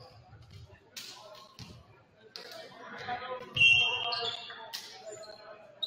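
A volleyball is struck with a hard smack.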